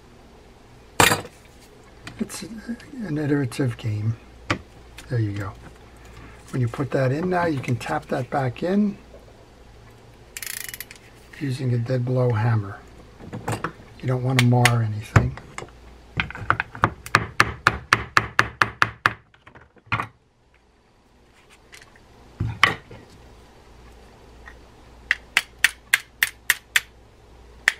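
Metal parts of a fishing reel click and tap as they are handled.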